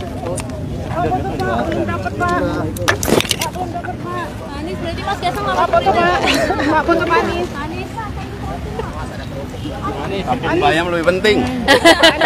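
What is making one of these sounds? A crowd of men chatter and call out close by, outdoors.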